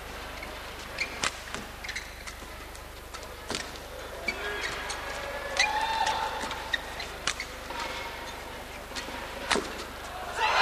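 Rackets smack a shuttlecock back and forth in a rally.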